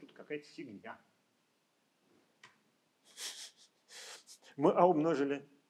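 A man speaks calmly into a microphone, heard through an online call.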